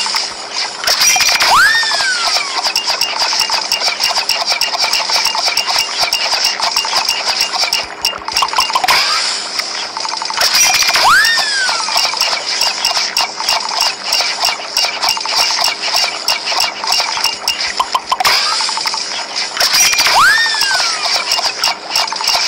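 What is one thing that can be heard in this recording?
Cartoonish whooshing sound effects play every few seconds.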